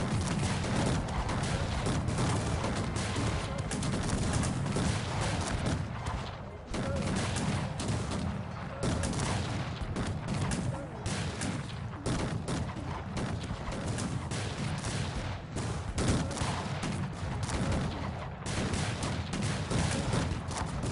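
Musket fire crackles and pops rapidly across a large battle.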